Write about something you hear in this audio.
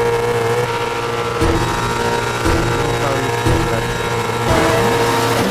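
A racing car engine idles and revs in short bursts.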